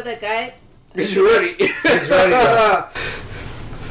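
A middle-aged man laughs heartily close to a microphone.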